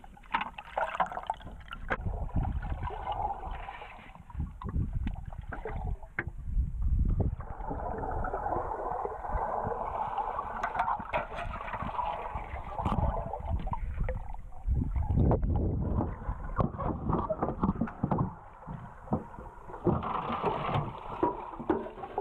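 Water swirls and rumbles in muffled bursts underwater.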